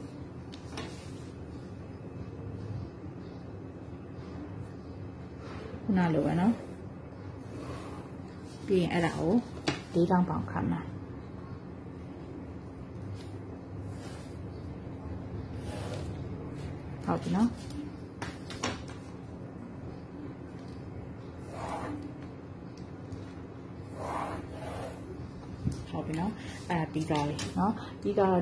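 A metal ruler slides and taps on paper.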